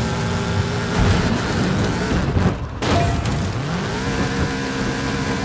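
A car crashes and rolls over with heavy thuds.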